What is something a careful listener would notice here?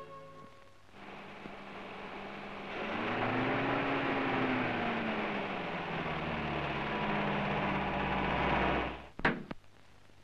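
A car engine hums as a car drives slowly up a road and passes close by.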